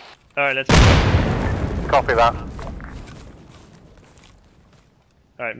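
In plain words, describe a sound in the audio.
An explosion booms nearby and rumbles away slowly.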